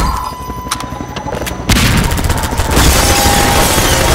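A helicopter's rotor thumps loudly nearby.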